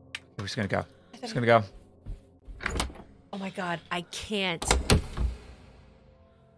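A young woman shrieks and gasps close to a microphone.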